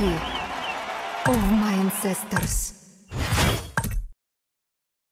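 Cartoonish battle sound effects clash and whoosh.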